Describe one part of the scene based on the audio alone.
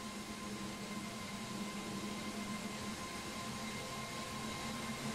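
A jet engine idles with a steady whining hum.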